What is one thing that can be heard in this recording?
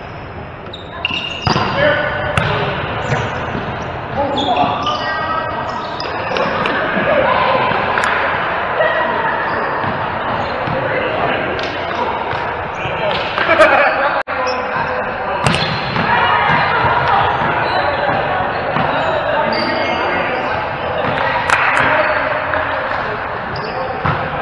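Adult men and women shout and talk during a volleyball game in a large echoing hall.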